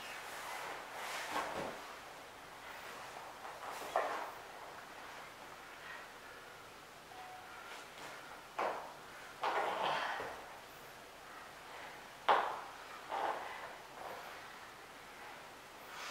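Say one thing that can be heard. Bodies thump and scuff on a padded mat.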